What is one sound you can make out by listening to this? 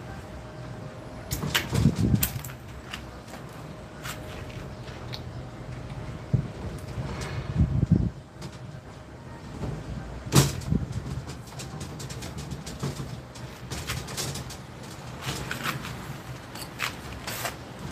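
Metal tubing clinks and rattles.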